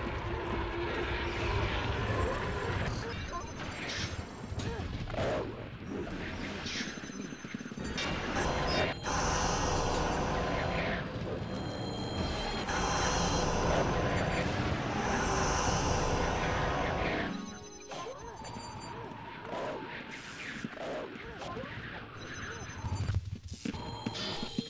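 Magic spell effects crackle and whoosh in a fantasy game.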